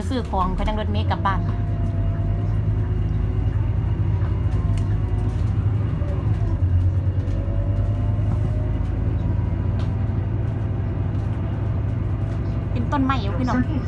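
A bus rolls along the road with steady road noise.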